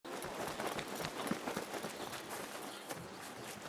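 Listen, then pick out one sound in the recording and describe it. Footsteps patter quickly on sandy ground.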